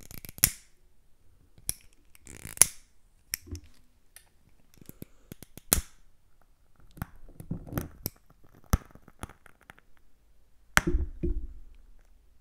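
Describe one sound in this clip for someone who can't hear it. Glass taps and clinks close to a microphone.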